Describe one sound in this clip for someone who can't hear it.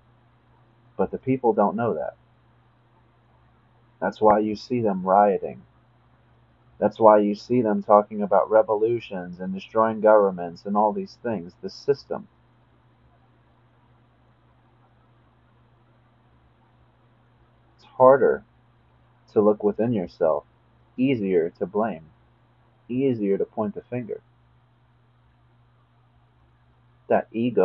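A young man speaks calmly and close to the microphone, in short bursts with pauses.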